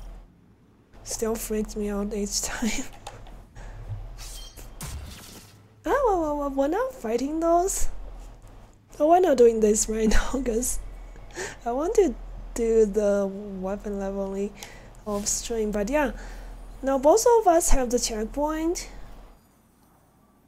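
A young woman speaks animatedly into a close microphone.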